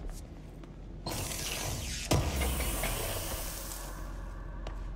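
Steam hisses loudly from a burst pipe.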